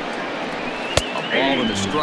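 A bat cracks sharply against a ball.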